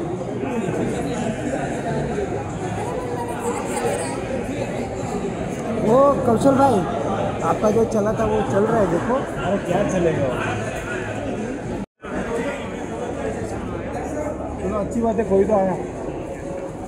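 A crowd of people chatters in a large, echoing hall.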